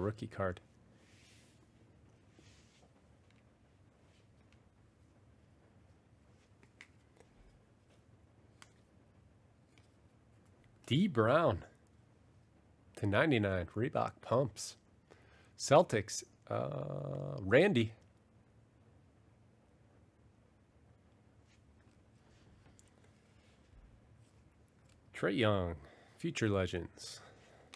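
Stiff trading cards rustle and slide against each other in hands.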